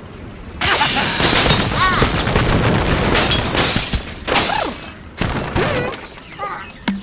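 Wooden and stone blocks crash and clatter as structures collapse.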